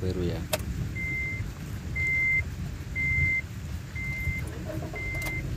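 A car dashboard chime beeps steadily at an even pace.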